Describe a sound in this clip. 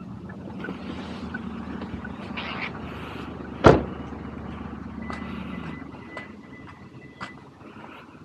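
Footsteps walk on pavement outdoors.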